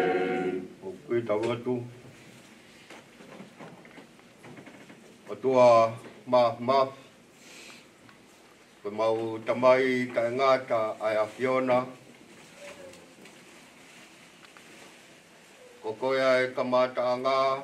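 A man speaks slowly and solemnly into a microphone, with long pauses.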